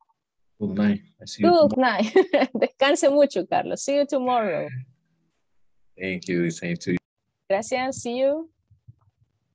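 A young woman talks calmly over an online call.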